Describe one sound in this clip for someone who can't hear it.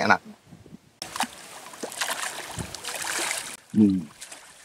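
A fish splashes and thrashes in the water.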